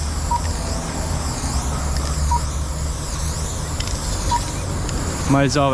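A spray can hisses steadily.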